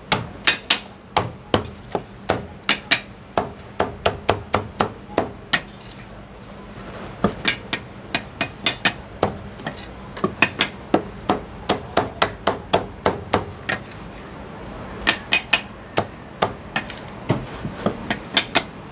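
A cleaver chops through roast meat onto a wooden block with sharp, rapid thuds.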